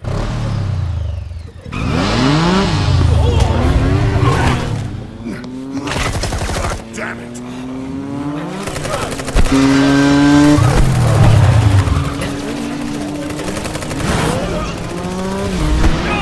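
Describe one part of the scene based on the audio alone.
A motorcycle engine revs loudly, rising and falling.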